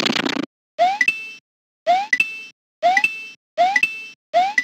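A coin chimes with a bright ring.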